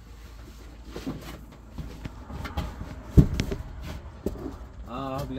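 Cardboard boxes rustle and knock.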